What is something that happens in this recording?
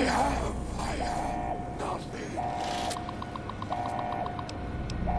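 A computer terminal beeps and chirps.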